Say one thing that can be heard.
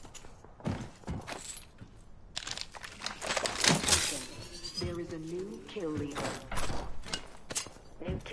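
Short game pickup sounds click as items are collected.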